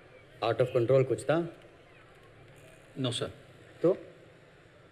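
A man speaks firmly nearby.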